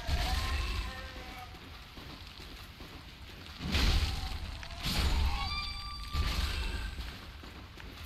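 Heavy footsteps splash through shallow water.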